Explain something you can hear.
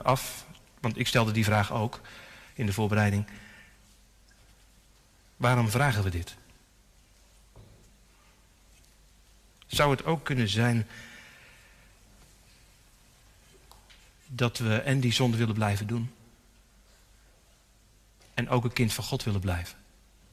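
A man speaks slowly and deliberately into a microphone, in short phrases with pauses, echoing in a large hall.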